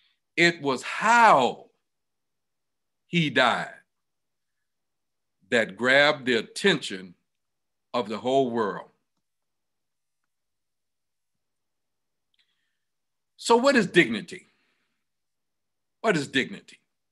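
A man speaks calmly in short phrases over an online call.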